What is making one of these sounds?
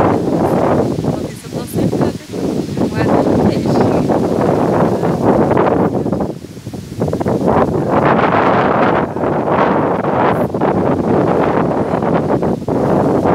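Wind rushes across the microphone outdoors.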